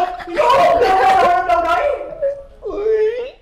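A young man shouts with animation nearby.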